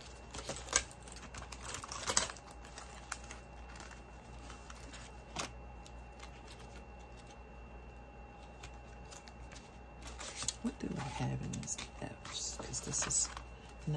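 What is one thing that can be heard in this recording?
Paper pages rustle and flap as they are turned.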